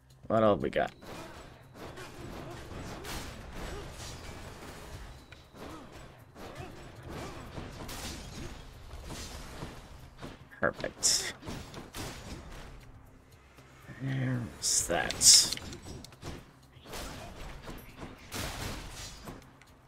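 Game combat sounds zap and clash with magical effects.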